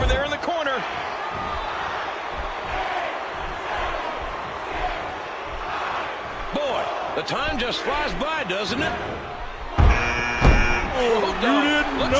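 A large crowd cheers and roars in an arena.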